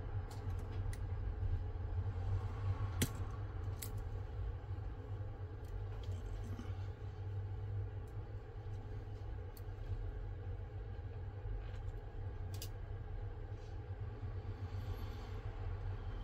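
Small plastic parts click faintly as a pry tool works them loose.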